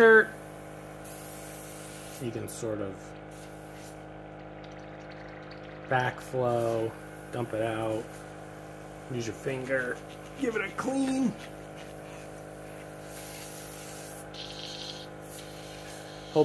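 An airbrush hisses softly as it sprays paint in short bursts.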